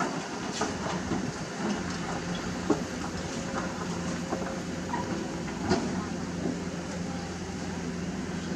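A diesel crawler excavator's engine rumbles as it works.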